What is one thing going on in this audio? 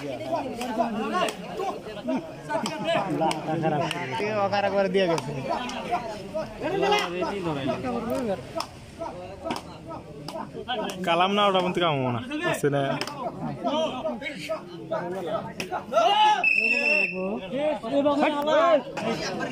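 A large crowd of young men shouts and cheers outdoors.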